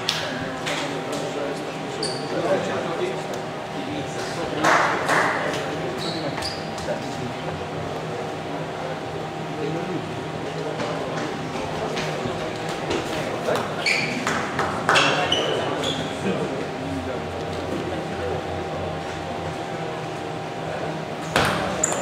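A table tennis ball clicks back and forth off paddles and a table.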